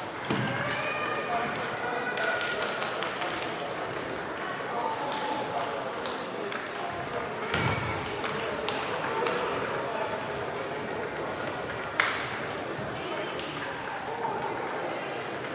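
A crowd of players and onlookers murmurs and calls out in the echoing hall.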